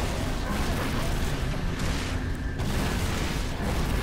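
Plasma blasts burst with sharp, crackling booms.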